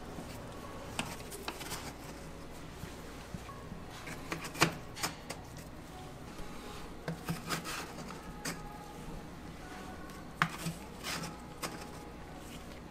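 Crisp wafers tap and clack softly as they are stacked by hand.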